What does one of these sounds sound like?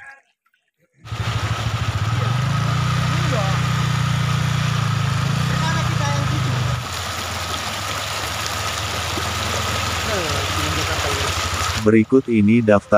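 A motorcycle engine hums steadily as it rides through shallow water.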